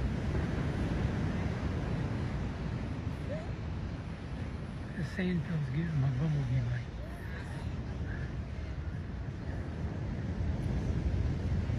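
Wind blows outdoors, rumbling against the microphone.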